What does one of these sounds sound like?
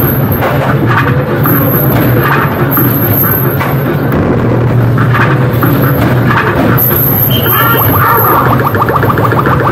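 Arcade machines hum and chime steadily all around.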